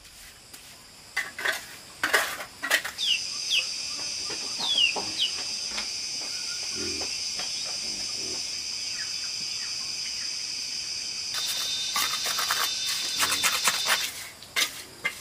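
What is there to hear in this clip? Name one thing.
A trowel scrapes wet mortar.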